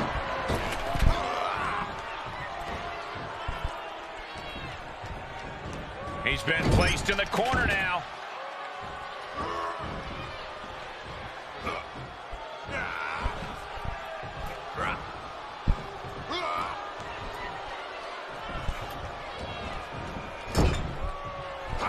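Wrestling blows thud and slam.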